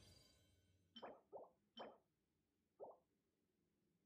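Short game chimes ring out one after another.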